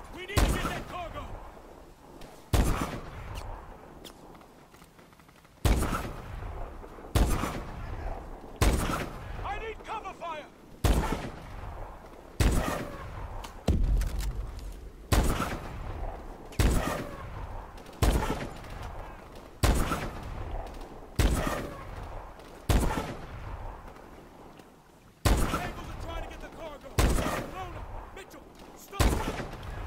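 Rifle shots crack loudly one after another, each followed by a rolling echo.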